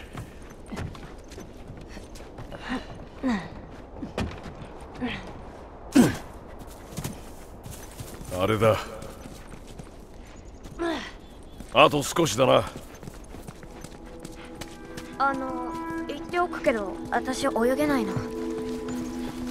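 Footsteps thud on wooden boards and grass.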